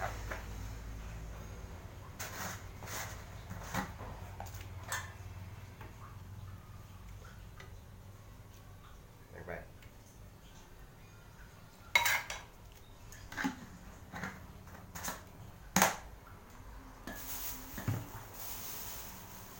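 Plastic containers knock and clatter.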